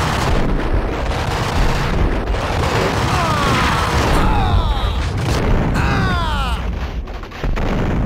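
Gunshots crack and boom in quick succession.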